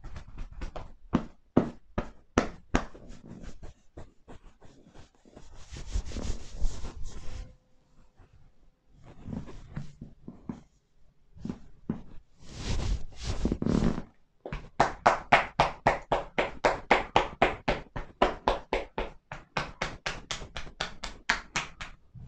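Hands pat and chop rapidly on a person's back.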